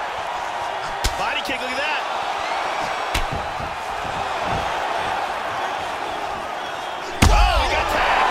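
Punches land with sharp thuds.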